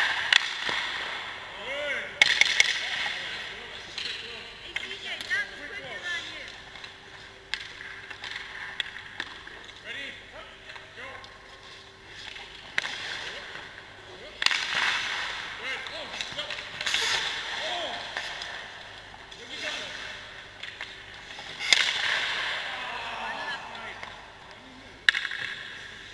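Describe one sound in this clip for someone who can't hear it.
Pucks smack off sticks and a goalie's pads in a large echoing rink.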